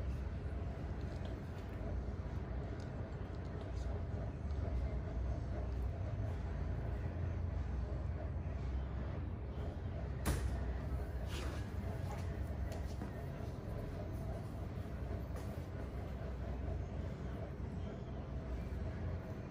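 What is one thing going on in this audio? Fingers rub and scratch through damp hair close by.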